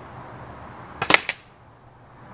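A rifle fires a single sharp shot close by.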